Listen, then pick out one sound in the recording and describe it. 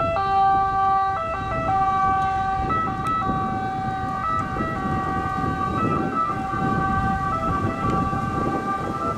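An ambulance engine hums as it drives past.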